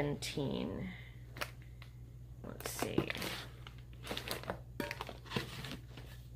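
Paper rustles and tears up close.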